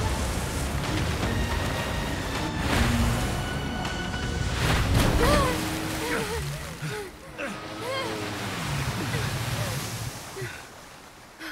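Water splashes and sprays against a hull.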